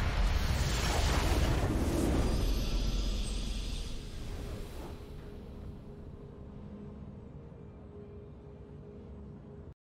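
A triumphant musical fanfare swells.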